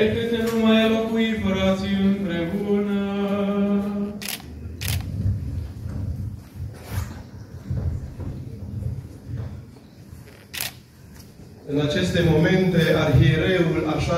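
Men chant a liturgical hymn together in a reverberant hall.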